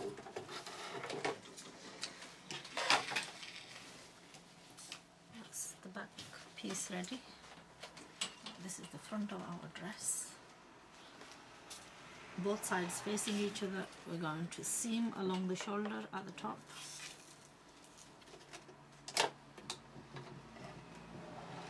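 Fabric rustles as hands handle it.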